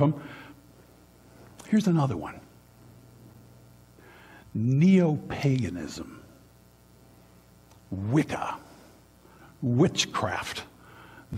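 An older man speaks with animation in short bursts, in a room with a slight echo.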